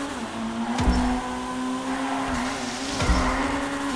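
Tyres screech on concrete during a drift.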